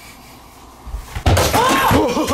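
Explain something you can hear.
A foot kicks a ball with a thud.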